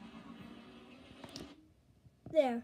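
Game music plays from a television.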